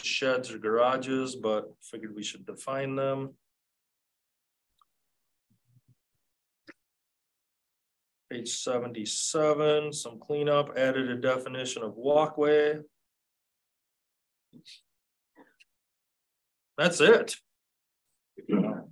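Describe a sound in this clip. A man speaks calmly through a microphone, with pauses.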